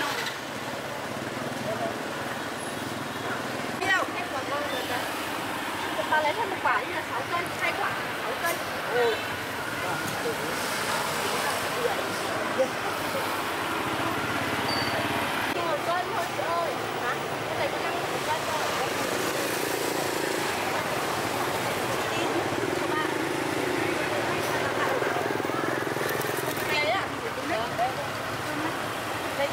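Motorbikes pass by on a street.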